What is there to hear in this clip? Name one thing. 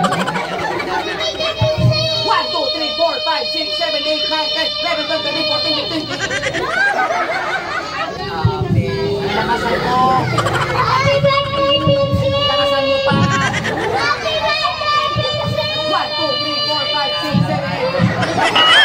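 A man speaks loudly and playfully to the children.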